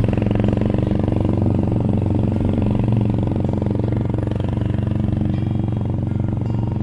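A motorcycle engine putters steadily at low speed.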